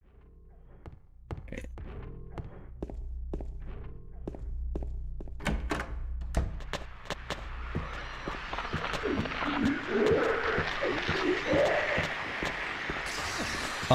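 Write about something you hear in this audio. Footsteps tap on a hard floor in an echoing corridor.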